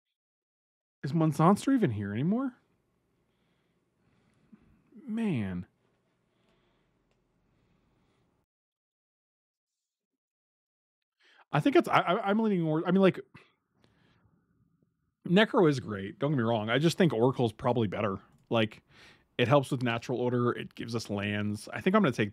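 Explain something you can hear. A middle-aged man talks with animation into a close microphone, in bursts with pauses.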